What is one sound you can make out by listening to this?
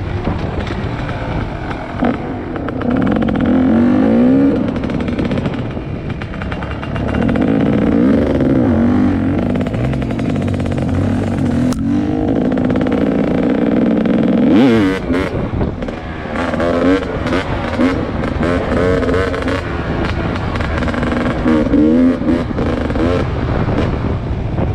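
Wind buffets past the rider.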